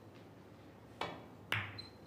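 A cue sharply strikes a snooker ball.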